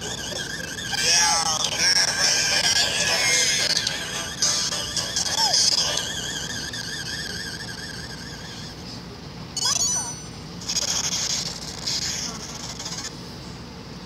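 Arcade game sound effects burst and zap.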